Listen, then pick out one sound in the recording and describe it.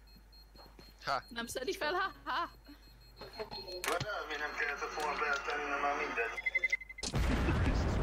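A small device beeps rapidly, faster and faster.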